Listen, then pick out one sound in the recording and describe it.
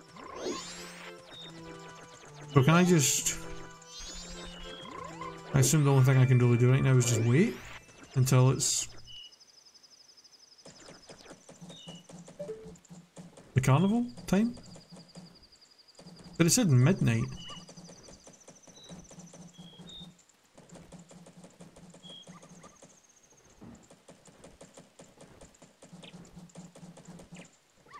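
Playful game music plays with bright chiming notes.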